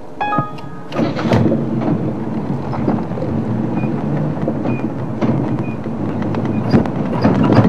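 A vehicle engine rumbles as it drives along a dirt track.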